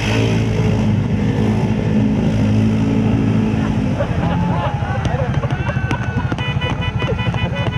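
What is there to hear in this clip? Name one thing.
Muddy water splashes and churns around a quad bike.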